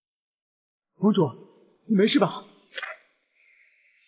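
A young man asks a worried question close by.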